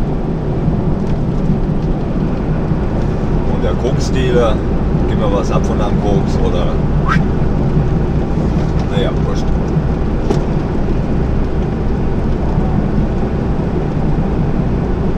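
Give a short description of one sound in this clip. Tyres roar on a motorway surface beneath a truck.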